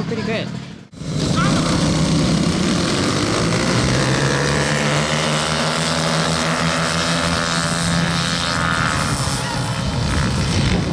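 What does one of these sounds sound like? Small motorbike engines rev and roar as they race off.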